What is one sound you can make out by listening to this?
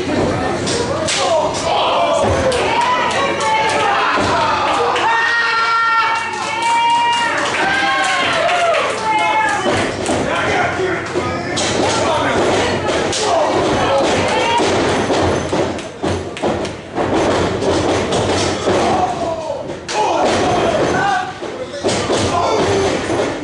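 A crowd of spectators shouts and cheers close by in an echoing hall.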